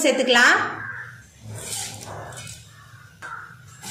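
Small seeds pour into a metal pan with a light rattle.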